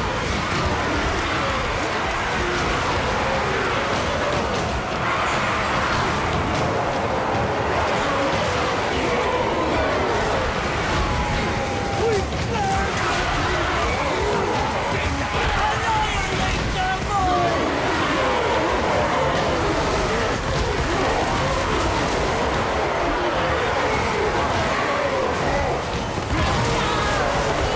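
Many warriors roar and shout in a huge battle.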